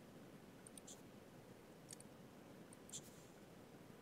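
Soft game menu clicks sound now and then.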